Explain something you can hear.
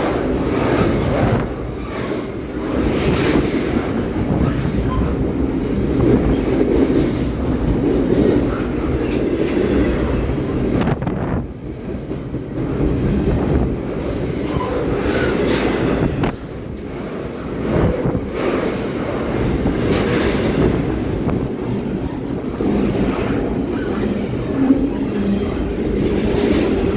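A long freight train rumbles steadily past up close.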